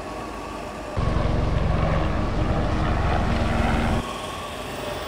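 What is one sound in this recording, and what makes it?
A helicopter's rotor thumps loudly nearby.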